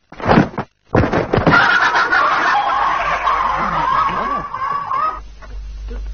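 An explosion booms and debris scatters.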